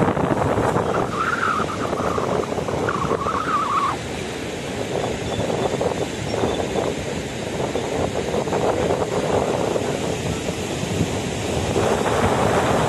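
A swollen river flows steadily outdoors.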